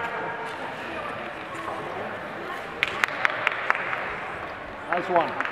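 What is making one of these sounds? Ice skate blades scrape and hiss across ice in a large echoing rink.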